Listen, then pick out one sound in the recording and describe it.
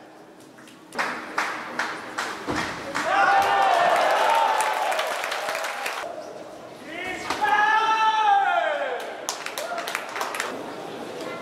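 A crowd applauds and cheers in a large echoing hall.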